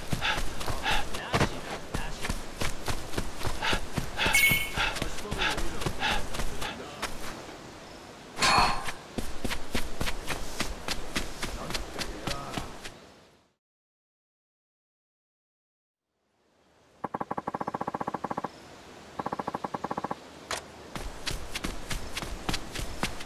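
Footsteps run quickly over gravel and stone.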